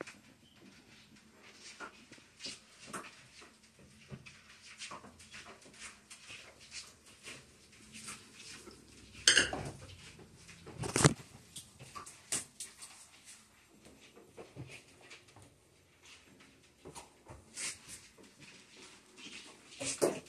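A phone knocks and rustles as it is handled up close.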